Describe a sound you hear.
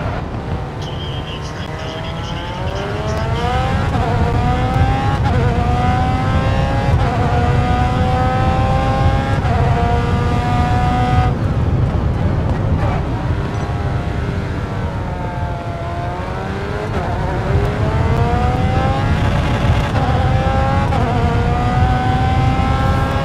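A racing car engine revs high, rising in pitch through each gear and dropping at each shift.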